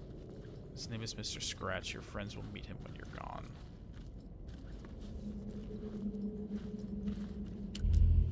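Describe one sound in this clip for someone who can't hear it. Footsteps crunch slowly on loose gravel.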